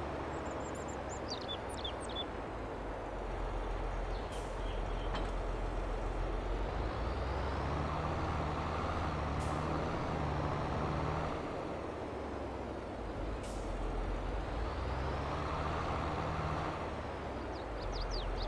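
A tractor engine rumbles steadily and rises in pitch as it speeds up.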